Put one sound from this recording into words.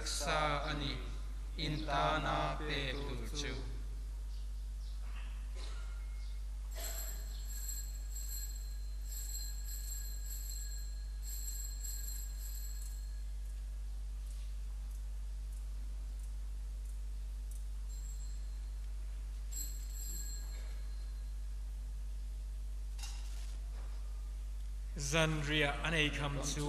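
A man chants through a microphone in a reverberant hall.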